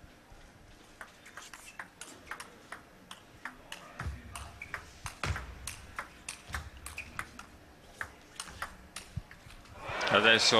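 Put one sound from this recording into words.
A ping-pong ball clicks quickly back and forth on paddles and a table in a large hall.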